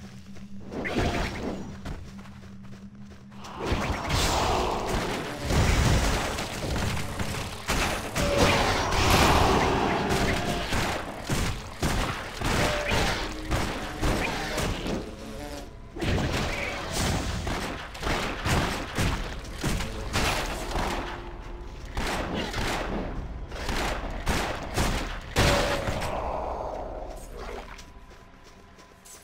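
Game combat sounds of spells, blasts and hits clash rapidly.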